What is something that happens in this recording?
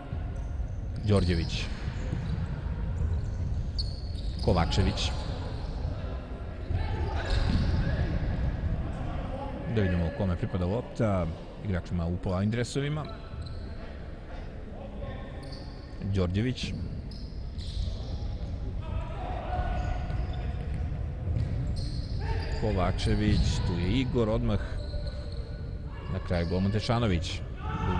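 Sports shoes squeak sharply on a hard floor in a large echoing hall.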